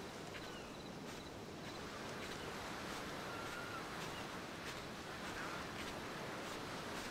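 Small waves lap gently against the shore.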